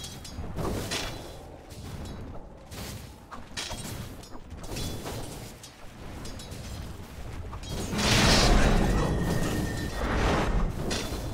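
Magic spells burst and crackle in a game battle.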